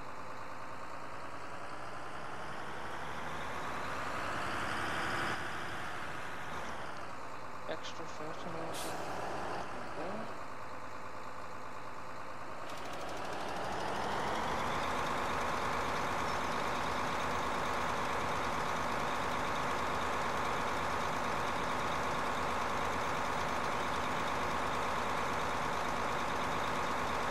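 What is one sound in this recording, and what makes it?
A tractor engine hums steadily, rising and falling in pitch as it speeds up and slows down.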